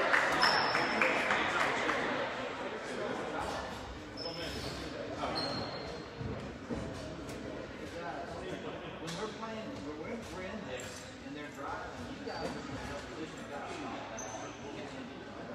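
A referee's whistle blows sharply a few times.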